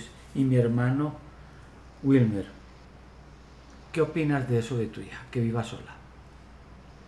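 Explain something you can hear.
A middle-aged man speaks calmly over an online call.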